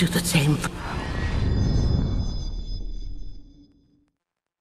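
A bright magical whoosh swells up and fades.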